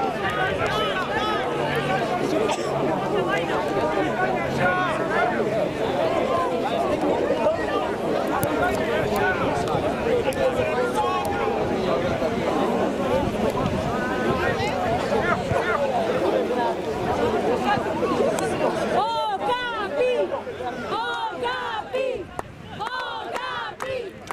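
Many young voices chatter and call out across an open field.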